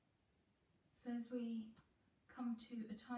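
A woman speaks calmly, close by.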